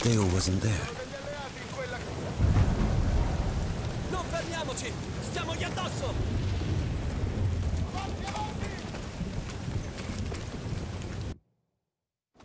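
Fires roar and crackle nearby.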